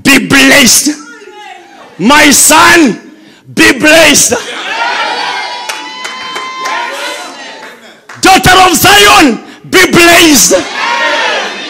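A man preaches loudly and forcefully through a microphone, his voice echoing in a large hall.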